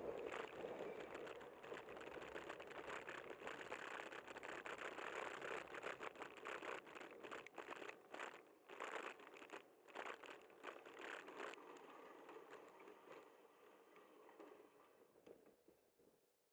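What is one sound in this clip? Wind buffets and rumbles loudly against a microphone, then dies down.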